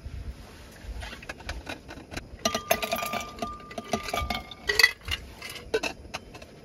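Ice cubes clink and rattle into a glass.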